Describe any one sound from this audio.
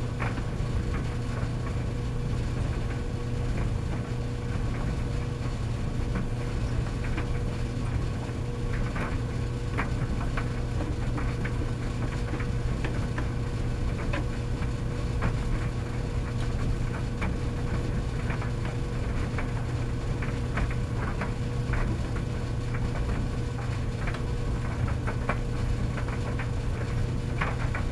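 Clothes tumble inside a dryer drum.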